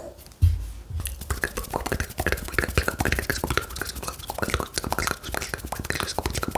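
Fingertips tap and click rapidly close to a microphone.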